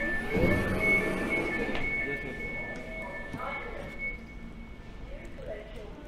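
A train's door warning beeps steadily.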